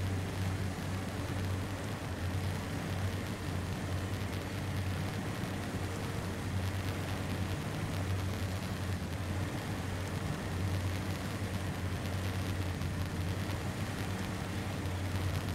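Water splashes around tyres as a truck wades through a river.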